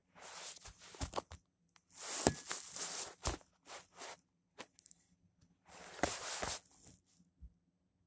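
Fabric rustles and scrapes close by in short bursts.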